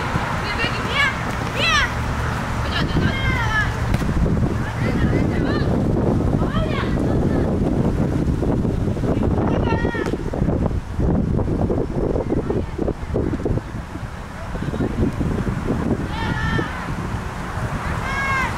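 A football thuds as players kick it across grass.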